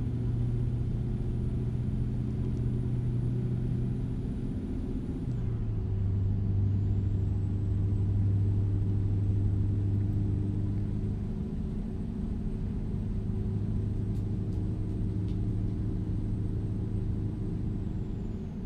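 A truck engine hums steadily at a low pitch, dropping briefly as the gear changes.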